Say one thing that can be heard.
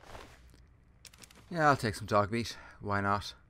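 Short clicks sound as items are picked through.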